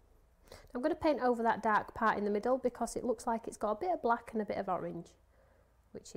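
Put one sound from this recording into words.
A woman speaks calmly and with animation into a microphone.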